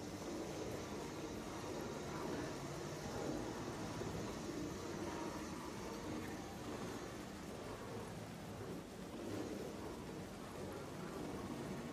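Rain falls steadily in wind outdoors.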